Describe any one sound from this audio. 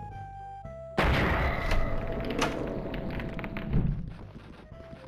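Gunfire bursts loudly from a game.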